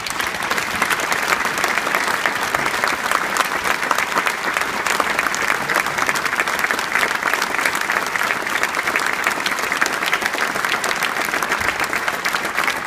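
A large crowd applauds steadily outdoors.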